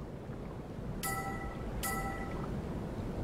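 A soft electronic chime rings twice.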